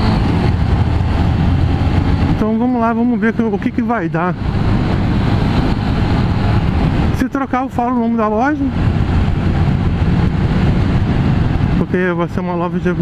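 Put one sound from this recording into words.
A motorcycle engine rumbles steadily and revs up and down at times.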